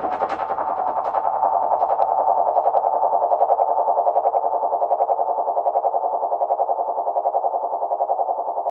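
Many small birds twitter and chirp in a busy flock.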